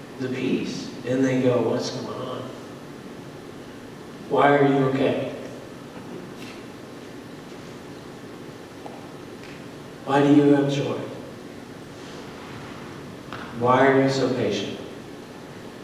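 A man speaks slowly through a microphone in a large echoing hall, with long pauses.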